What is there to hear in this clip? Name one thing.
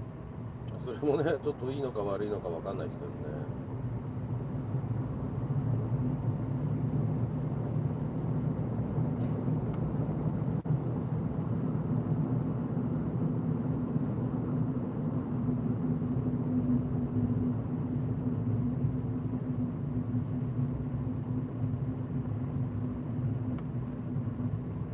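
A car engine hums steadily from inside the car as it drives.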